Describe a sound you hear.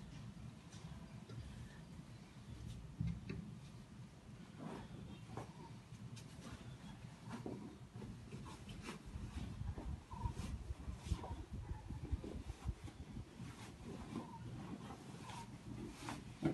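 Cloth rustles as a pillowcase is pulled over a pillow.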